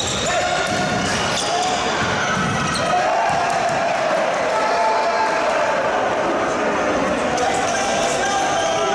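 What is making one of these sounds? Young men shout to each other across an echoing indoor hall.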